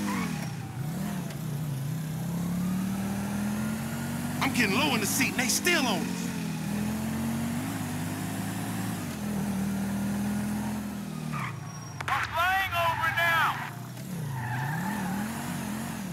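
A car engine hums and revs up and down.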